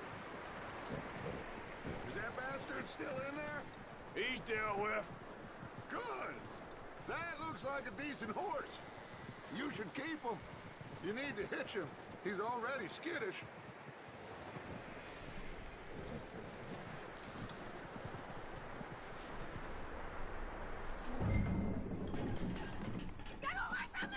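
A horse's hooves crunch slowly through snow.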